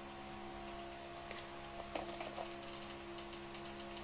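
A man opens a plastic bottle with faint clicks.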